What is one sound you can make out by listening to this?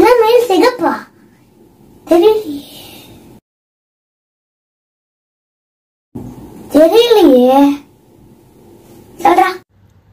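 A young boy recites loudly and expressively close to a microphone, with pauses between lines.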